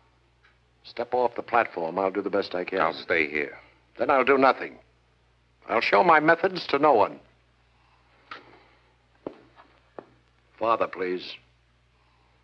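A second man answers calmly nearby.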